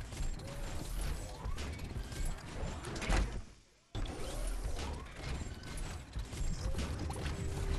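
Heavy metal footsteps thud as a large robot walks over rocky ground.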